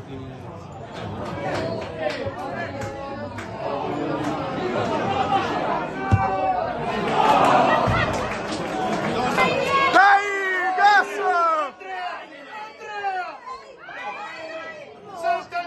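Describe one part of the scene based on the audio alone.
Young men shout and cheer across an open field.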